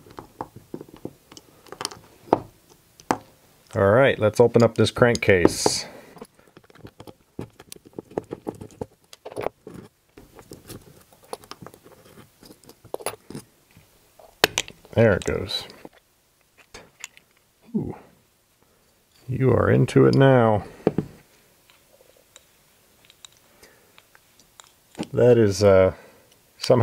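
Small metal engine parts click and tap together as they are handled.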